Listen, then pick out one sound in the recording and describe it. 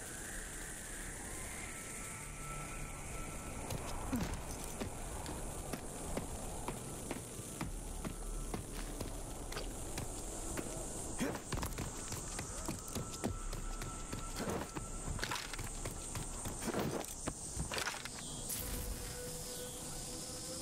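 Footsteps crunch over gravel and rubble.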